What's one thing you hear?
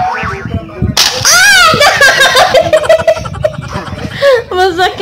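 A woman screams and laughs loudly.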